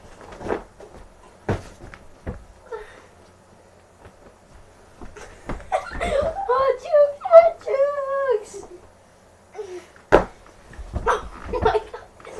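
A pillow thuds against a boy.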